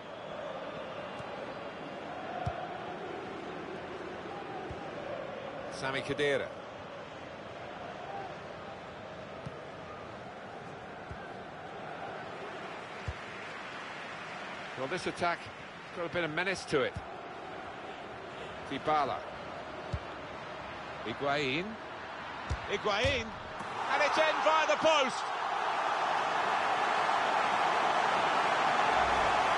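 A large stadium crowd murmurs steadily and swells into loud cheering.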